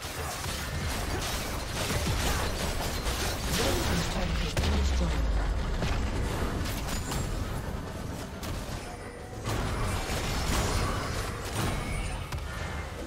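Magic spells crackle and blast.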